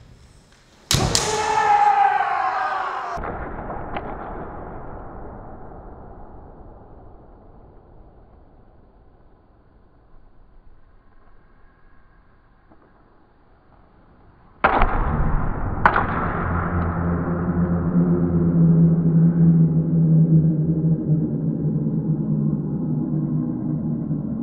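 Men shout loud, drawn-out battle cries in a large echoing hall.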